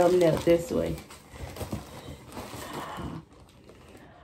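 A plastic mailer bag rustles.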